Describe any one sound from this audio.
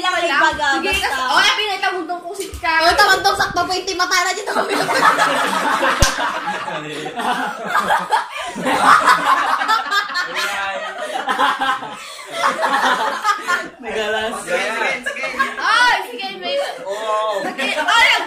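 A teenage girl laughs loudly close by.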